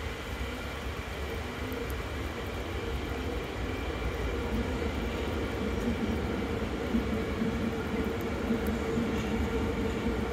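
A train rumbles steadily across a bridge, its wheels droning and humming.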